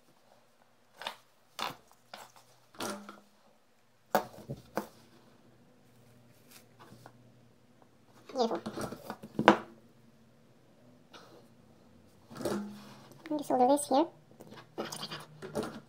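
Small objects click and tap against a hard tabletop.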